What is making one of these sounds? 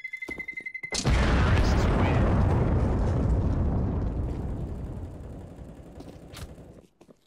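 A loud explosion booms and rumbles away slowly.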